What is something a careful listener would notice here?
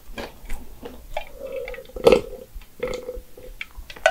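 A young woman takes a gulp of a drink close to a microphone.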